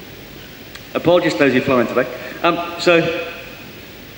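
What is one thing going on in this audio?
A man speaks through a microphone.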